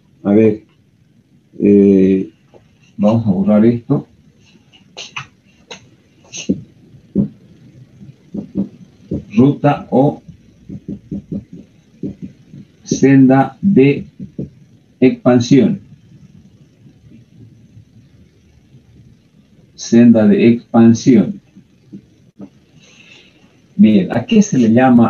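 An older man speaks calmly and clearly in short phrases, close to a microphone.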